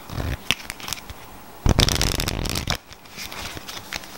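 A card box's cardboard flap scrapes and rubs.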